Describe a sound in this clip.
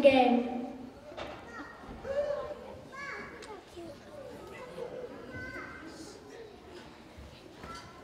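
Children murmur and chatter quietly.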